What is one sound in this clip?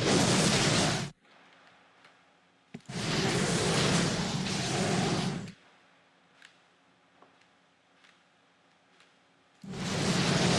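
Game spells crackle and explode in a battle.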